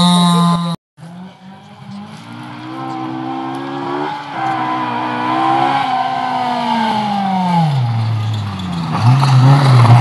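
A rally car engine grows louder as the car approaches, revving up and down.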